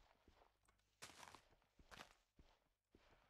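Wood is chopped with repeated dull knocks.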